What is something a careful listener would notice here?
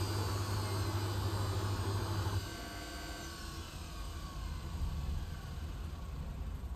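Water sloshes inside a washing machine drum.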